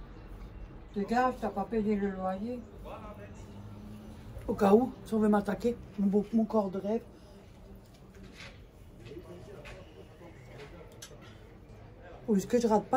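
A middle-aged woman talks close by in a lively way.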